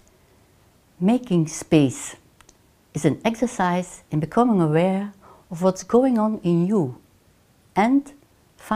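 An elderly woman speaks calmly and clearly into a close microphone.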